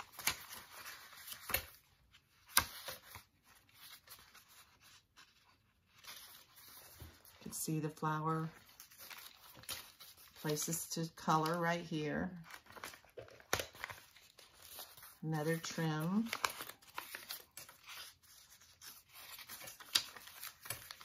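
Paper pages rustle and flip close by.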